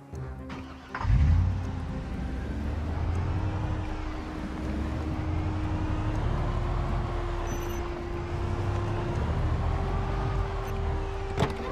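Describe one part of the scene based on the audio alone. A van engine rumbles steadily as the van drives.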